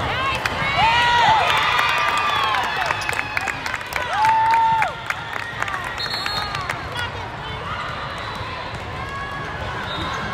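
A volleyball thuds off players' hands and arms.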